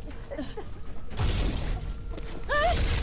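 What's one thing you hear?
An explosion booms loudly and then rumbles away.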